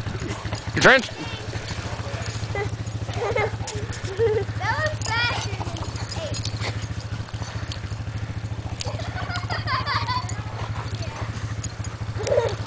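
Dogs bark and yelp.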